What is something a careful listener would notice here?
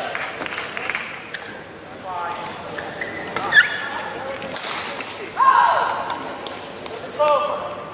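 A shuttlecock is struck back and forth with rackets in a large echoing hall.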